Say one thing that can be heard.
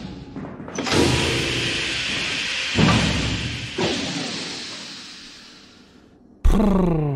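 An elevator rumbles and rattles as it moves.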